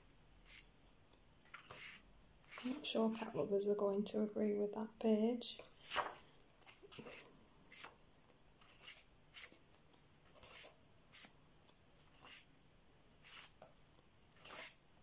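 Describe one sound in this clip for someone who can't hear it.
Paper pages rustle and flip as a book is leafed through, close by.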